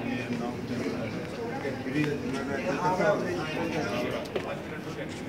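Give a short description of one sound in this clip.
Several men talk at once nearby, in a room with some echo.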